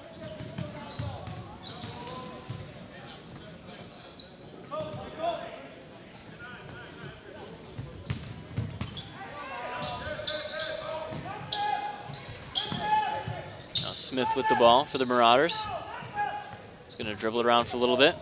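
Sneakers squeak on a wooden court floor.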